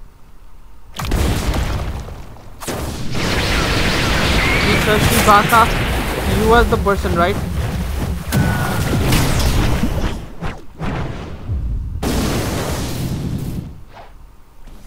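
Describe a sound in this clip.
Game combat effects whoosh and blast loudly.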